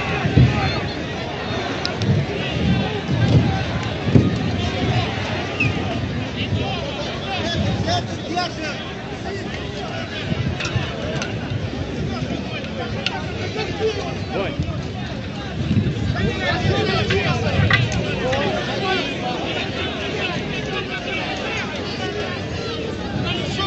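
A large crowd of men shouts and clamours outdoors.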